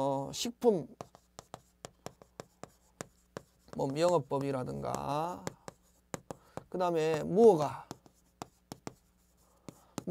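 Chalk taps and scratches against a board.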